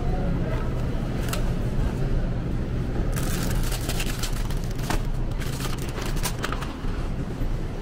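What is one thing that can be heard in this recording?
Bottles rattle and clink as they are put into a shopping cart.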